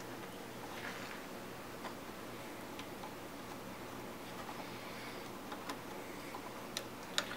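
Small metal parts click and tick softly close by.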